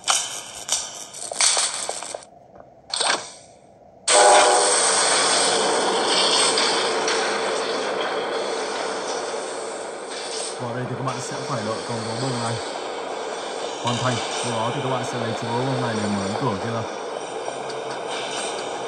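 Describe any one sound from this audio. A video game plays noisy sound effects from a tablet speaker.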